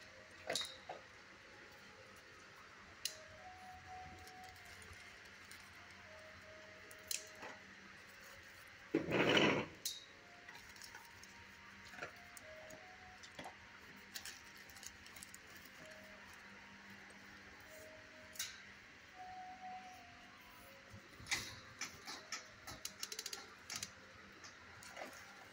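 A dog's claws tap and click on a hard floor.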